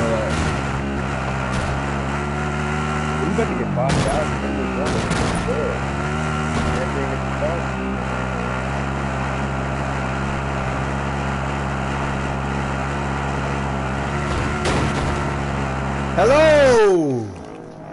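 A vehicle engine drones steadily, then winds down suddenly.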